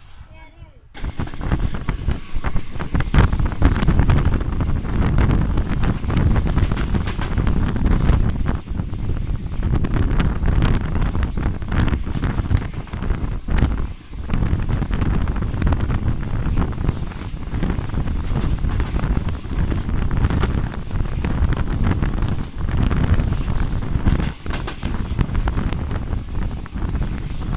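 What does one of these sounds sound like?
A train rumbles and rattles along the tracks at speed.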